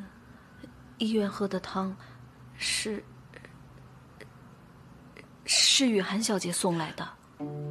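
A middle-aged woman speaks quietly and hesitantly, close by.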